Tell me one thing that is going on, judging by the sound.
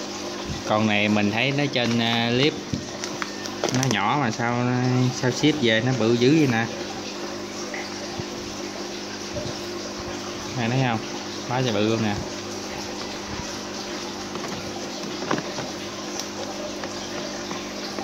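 A plastic bag of water crinkles and rustles as it is handled.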